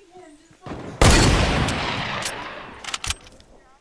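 A shotgun fires a single loud blast that echoes and fades.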